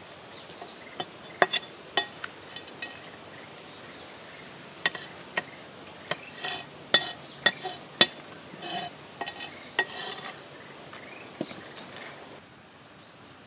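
A cleaver chops and scrapes against a wooden board.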